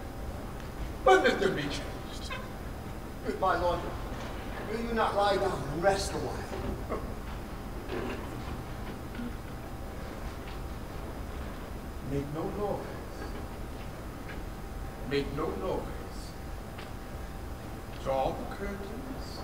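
An elderly man speaks into a microphone in short, dramatic bursts.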